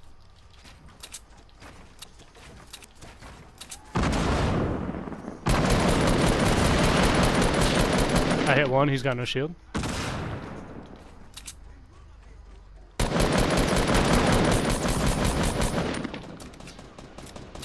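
Wooden walls snap into place with quick knocks.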